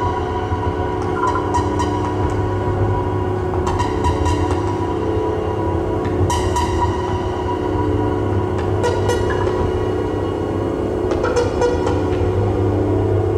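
A modular synthesizer makes bursts of clicking, glitchy sounds.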